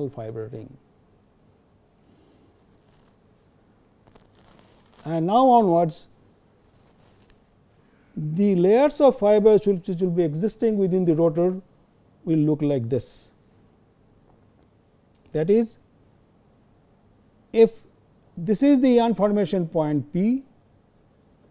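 An older man speaks calmly into a microphone, in short phrases with pauses.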